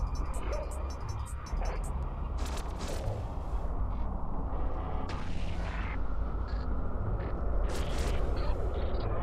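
A low engine rumble drones steadily.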